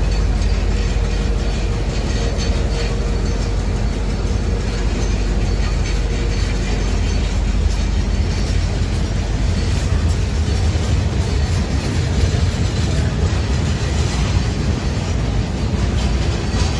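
A train rolls slowly along, its wheels rumbling and clacking on the rails.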